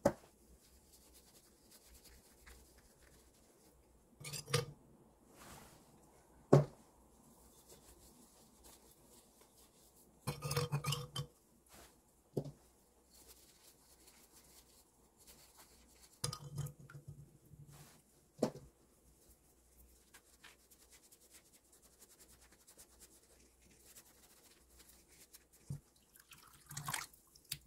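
A cloth rubs and squeaks against a ceramic pot.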